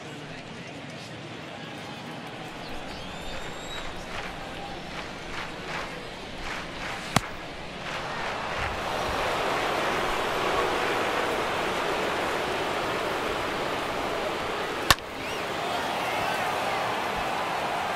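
A large crowd murmurs and cheers throughout a stadium.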